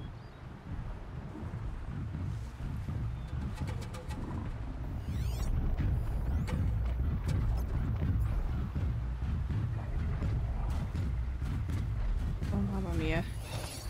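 A large mechanical beast rumbles and stomps closer, growing louder.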